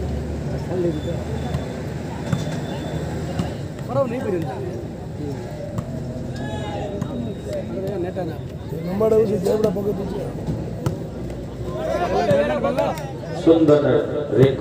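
A large crowd of spectators chatters and cheers outdoors.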